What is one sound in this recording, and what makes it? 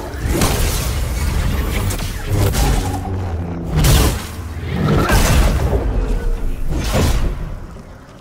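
A lightsaber clashes and sizzles against a metal droid.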